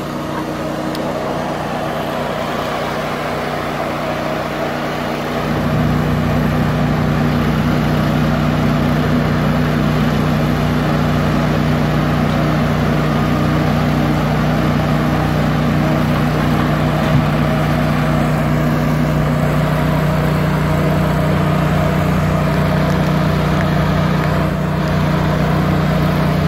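A diesel knuckleboom log loader engine rumbles under load.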